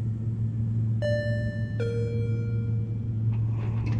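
An elevator chime dings twice.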